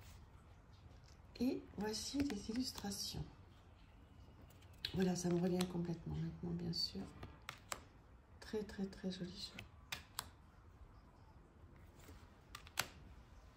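Cards click softly as they are flipped over one by one.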